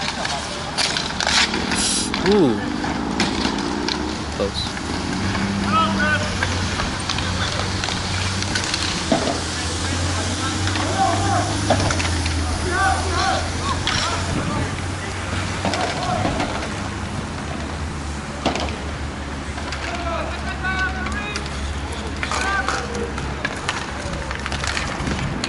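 Hockey sticks clack sharply against a ball and the rink floor.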